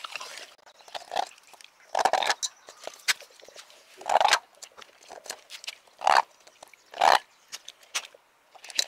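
Ice clinks and scrapes against a metal bowl.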